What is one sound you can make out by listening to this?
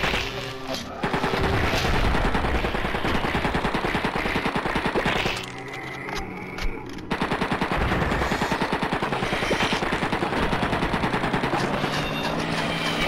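Rapid gunfire from an automatic weapon rattles loudly.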